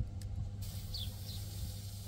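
Thick batter pours from a bowl onto a hot griddle.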